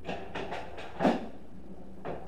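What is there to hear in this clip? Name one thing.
A cue stick strikes a ball with a sharp click.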